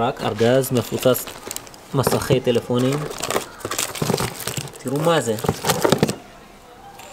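Hard plastic phones clatter and rustle as a hand sorts through them.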